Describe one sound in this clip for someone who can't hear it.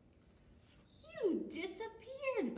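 A young woman reads aloud with animation close by.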